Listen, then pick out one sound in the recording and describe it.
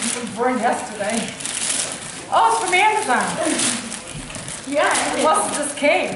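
Wrapping paper crinkles and tears.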